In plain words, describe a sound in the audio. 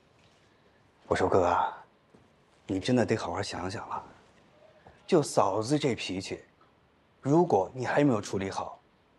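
A man speaks calmly and seriously nearby.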